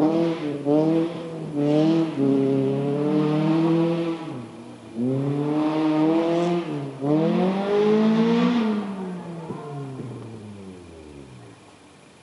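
A rally car engine revs hard and fades into the distance.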